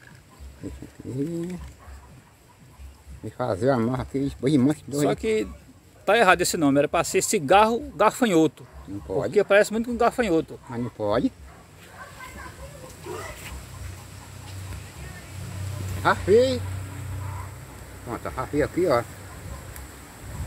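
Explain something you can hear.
An elderly man talks calmly close by.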